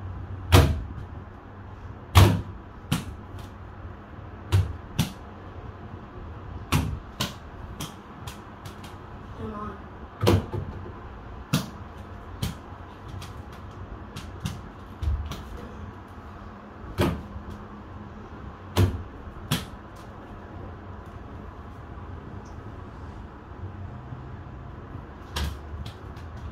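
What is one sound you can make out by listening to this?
A ball thumps against a door and hoop.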